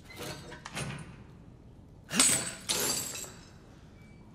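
A metal gate rattles and creaks open.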